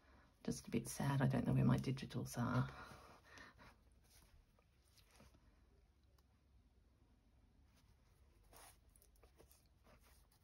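Thread is pulled through cloth with a soft swish.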